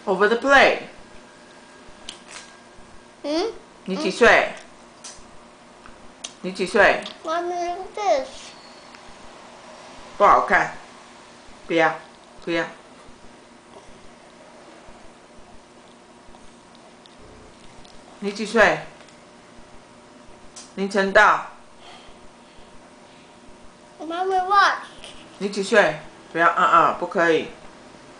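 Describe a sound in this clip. A small boy talks in short bursts, close to the microphone.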